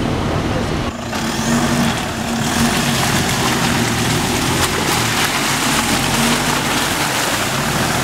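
A pickup truck's engine rumbles as it drives slowly over rough ground.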